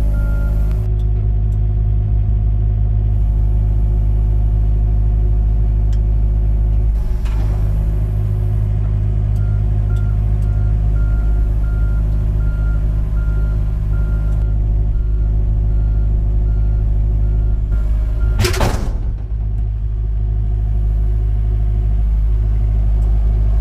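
A mini excavator's diesel engine idles.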